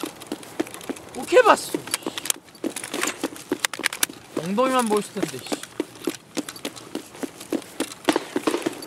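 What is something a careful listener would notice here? Footsteps crunch and thud quickly on hard ground.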